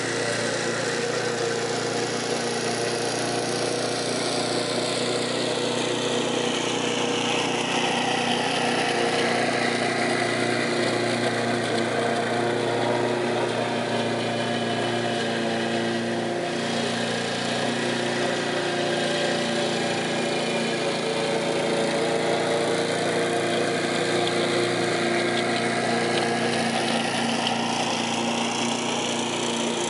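A lawn mower engine drones steadily, growing louder as it passes close and fading as it moves away.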